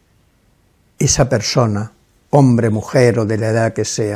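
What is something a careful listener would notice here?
An elderly man speaks firmly and close to a microphone.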